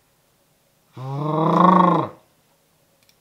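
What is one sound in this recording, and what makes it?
A young man lets out a long, loud drawn-out cry close to a microphone.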